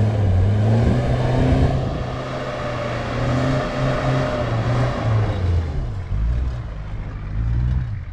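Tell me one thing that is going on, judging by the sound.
Tyres crunch and scrabble over loose dirt and stones.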